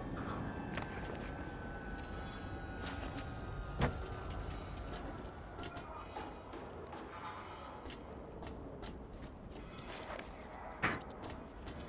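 Footsteps thud on metal and wooden floors.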